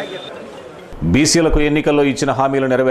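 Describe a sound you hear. A middle-aged man speaks calmly, close by, as if presenting news.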